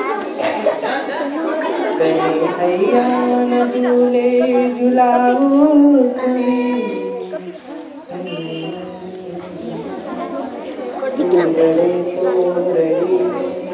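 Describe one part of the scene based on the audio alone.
A young man sings into a microphone, holding long notes.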